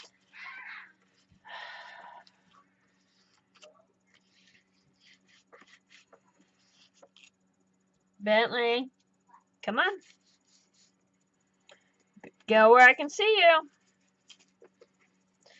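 A paintbrush softly brushes across paper.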